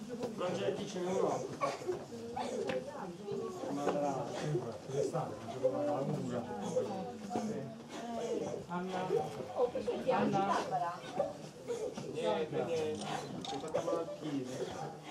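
Several adult men and women talk and chatter nearby, voices overlapping.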